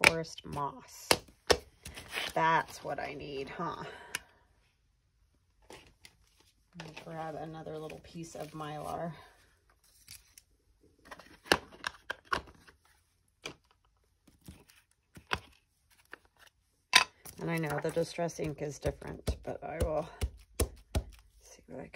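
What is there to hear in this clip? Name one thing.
Small plastic cases clack and tap against a table.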